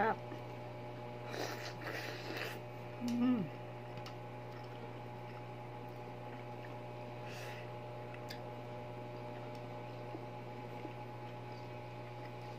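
A woman chews food with smacking sounds.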